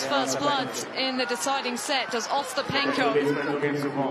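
A young woman shouts excitedly.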